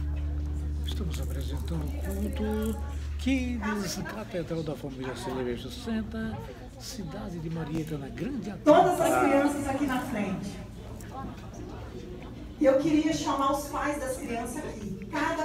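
A woman talks with animation through a microphone over loudspeakers in a large room.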